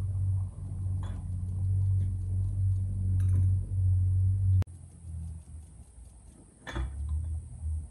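A metal frame clanks and knocks.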